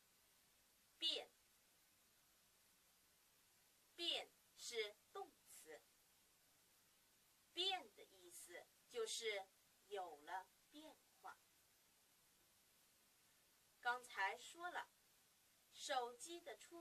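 A young woman speaks clearly and slowly into a close microphone, pausing between words.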